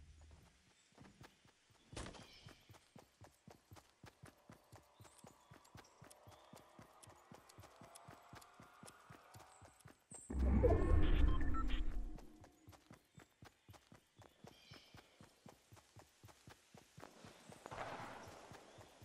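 Footsteps run quickly over grass in a game.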